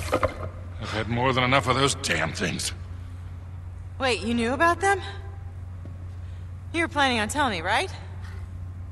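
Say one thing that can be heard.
A young woman talks through a microphone.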